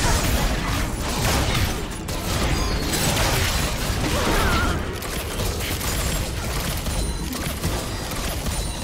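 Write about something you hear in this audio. Game spells crackle and burst in rapid, busy clashes.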